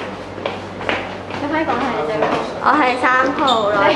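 A young woman speaks close up.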